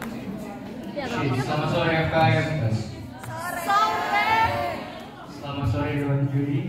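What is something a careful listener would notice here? A young man sings into a microphone.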